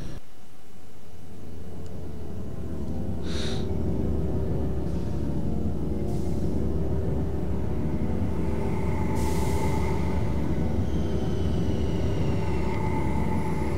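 A deep, steady hum drones on.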